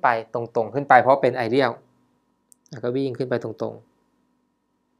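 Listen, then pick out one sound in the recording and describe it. A young man explains calmly into a close microphone.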